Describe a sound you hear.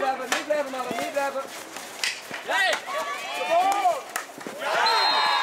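Hockey sticks strike a ball with sharp clacks.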